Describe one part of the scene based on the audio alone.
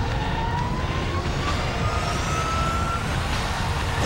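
An aircraft engine whines and rises in pitch as it lifts off.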